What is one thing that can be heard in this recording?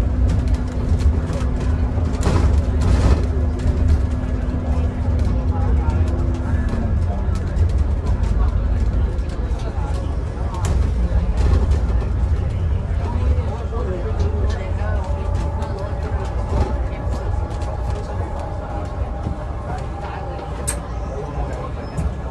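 A bus engine rumbles low and steady from inside the bus.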